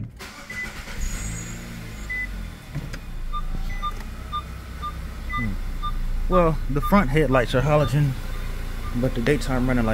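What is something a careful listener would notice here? A car engine starts and idles with a low rumble.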